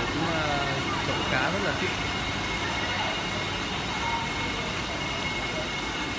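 Water bubbles and churns steadily in a large tank.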